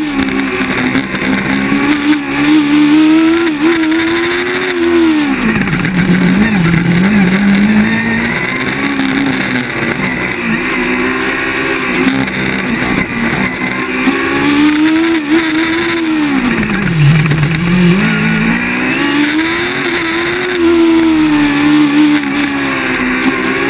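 A race car engine roars up close, revving up and dropping as the car brakes and accelerates through the turns.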